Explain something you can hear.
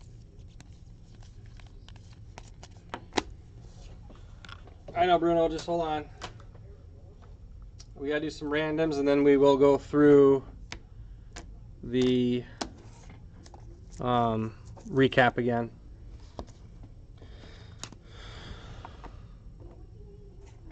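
Plastic card cases clack softly as they are handled and stacked.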